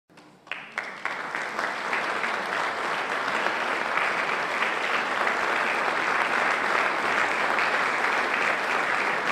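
A large audience applauds loudly in an echoing hall.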